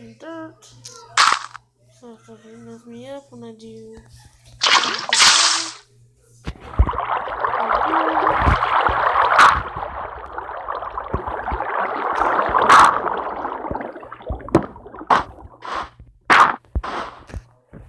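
Blocks are placed with soft thuds.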